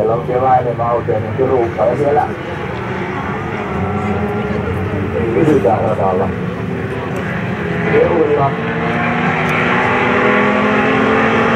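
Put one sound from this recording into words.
Racing car engines roar and whine in the distance.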